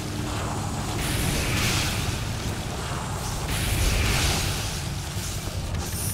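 A sword clashes with metallic hits.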